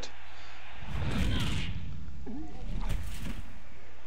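A heavy body thuds onto the ground in a tackle.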